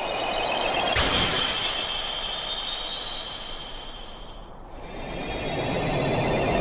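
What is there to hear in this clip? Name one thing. A magical burst rings out with shimmering, tinkling chimes.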